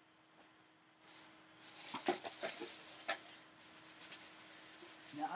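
Clothing rustles and bumps close by.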